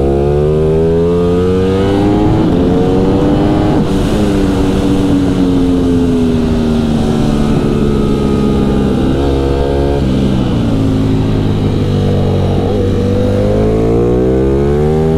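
A motorcycle engine roars loudly, rising and falling in pitch as it shifts gears.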